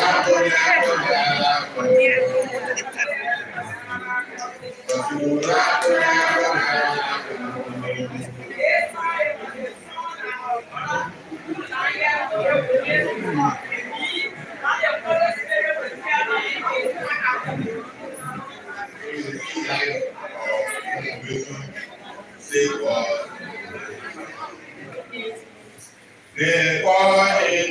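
A crowd of men and women talk and call out all at once in a large echoing hall.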